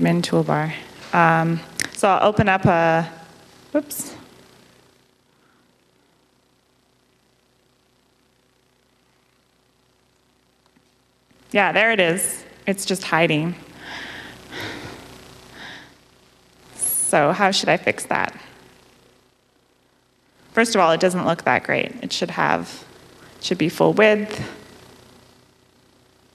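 A young woman speaks calmly into a microphone, heard over a loudspeaker.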